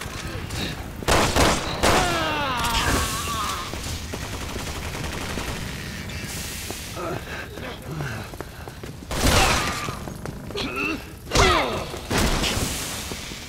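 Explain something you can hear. Heavy blows and crashes thud during a fight.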